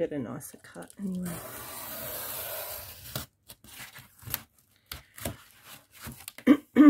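A craft knife scrapes as it cuts through cardboard.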